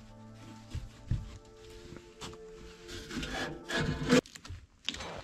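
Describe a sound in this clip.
A hand knocks against wooden logs.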